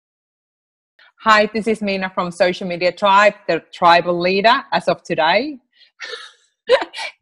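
A woman speaks cheerfully and with animation over an online call.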